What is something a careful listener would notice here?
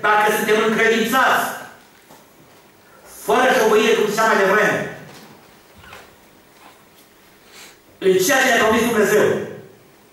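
An older man speaks with emphasis into a microphone, in bursts with pauses, in a slightly echoing room.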